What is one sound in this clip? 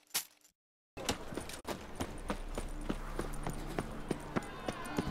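Footsteps patter on cobblestones outdoors.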